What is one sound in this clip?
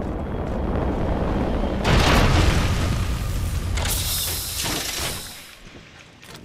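A loud explosion roars and rumbles.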